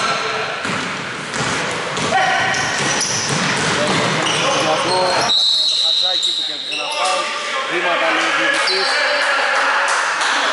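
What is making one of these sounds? Sneakers squeak on a hardwood court in an echoing gym.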